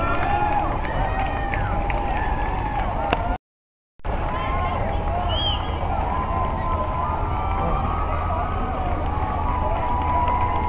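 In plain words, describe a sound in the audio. A crowd of spectators cheers and chatters nearby.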